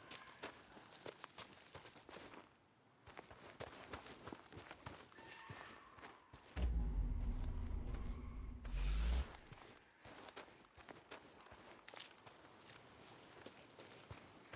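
Footsteps crunch quickly over grass and dirt.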